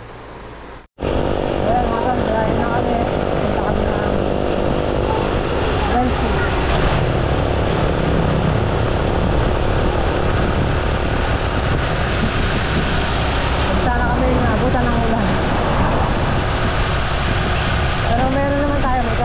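Wind rushes past loudly.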